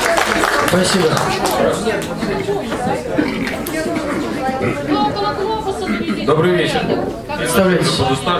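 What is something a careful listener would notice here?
A man speaks into a handheld microphone with animation, heard through loudspeakers in a large hall.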